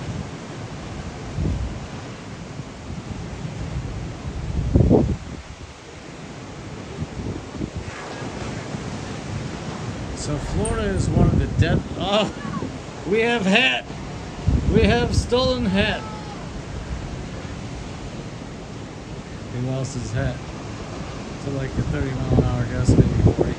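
Waves wash softly onto the shore.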